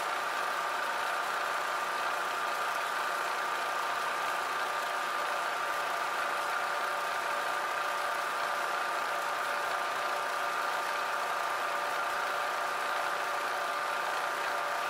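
A milling machine's cutter whirs steadily as it bores into metal.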